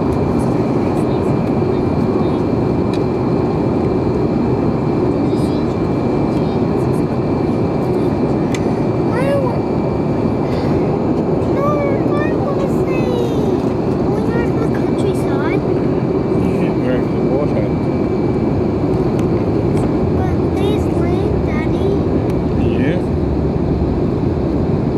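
A jet engine roars steadily in a loud, constant rush of cabin noise.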